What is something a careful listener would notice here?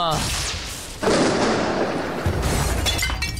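Thunder crashes and rumbles.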